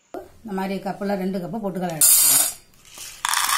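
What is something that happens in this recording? Dry lentils pour and rattle into a metal bowl.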